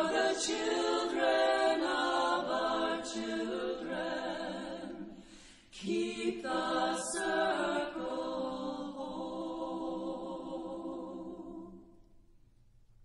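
An elderly woman sings slowly through a microphone.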